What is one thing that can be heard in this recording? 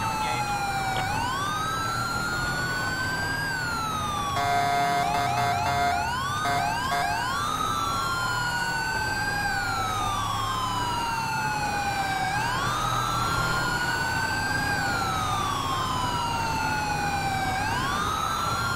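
A police siren wails, rising and falling steadily.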